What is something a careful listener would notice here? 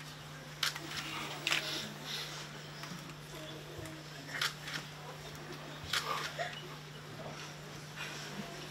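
A woman sobs and sniffles close by.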